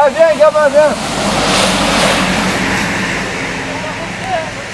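A car passes by on a road.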